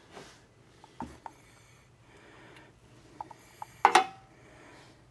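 A metal tool clanks and clicks against a metal bracket.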